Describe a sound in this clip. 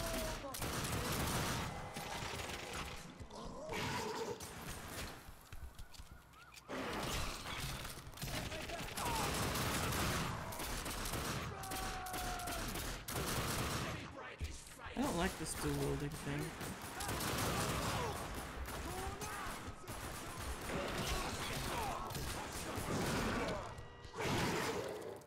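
Pistols fire in loud, rapid shots.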